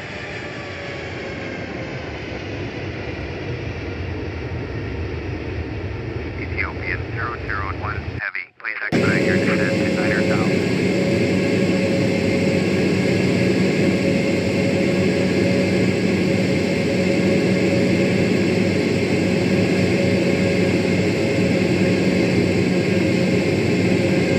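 A jet airliner's engines drone steadily, growing louder and closer.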